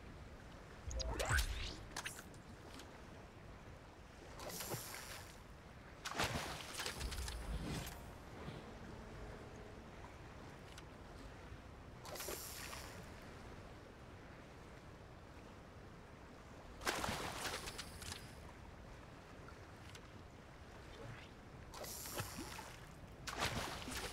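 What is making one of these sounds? A fishing line is cast and splashes into water.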